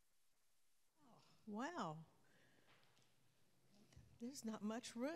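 People in a congregation murmur and talk softly.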